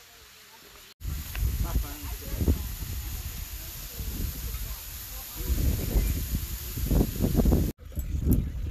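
Water from a waterfall splashes steadily onto rocks.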